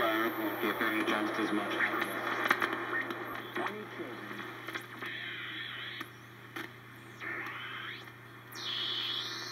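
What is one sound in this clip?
An electronic noise box hisses and warbles, its pitch sweeping as a knob is turned.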